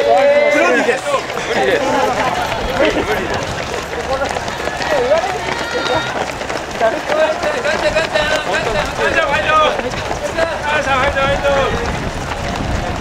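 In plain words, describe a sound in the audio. Nearby spectators cheer and shout with excitement outdoors.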